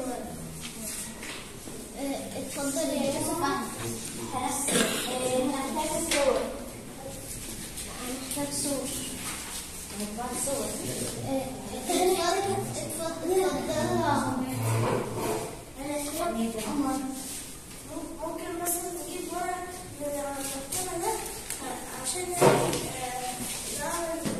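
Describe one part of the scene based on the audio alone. A woman speaks calmly to a group of children nearby.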